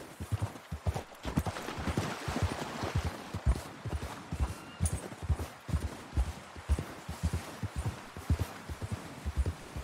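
A stream rushes nearby.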